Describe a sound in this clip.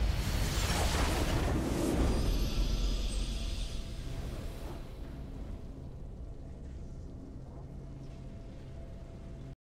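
A triumphant victory fanfare plays and fades.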